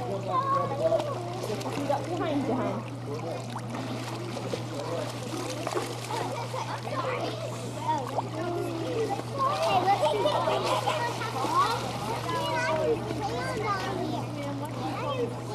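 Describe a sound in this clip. Water splashes and laps in a swimming pool.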